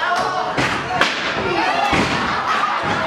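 A chair slams onto a wrestler.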